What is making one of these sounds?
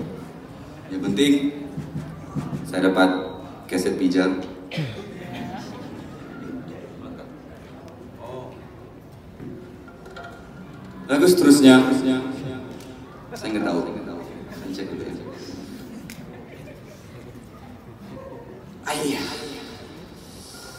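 A man talks into a microphone through loudspeakers.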